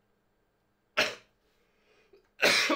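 A young man coughs sharply close by.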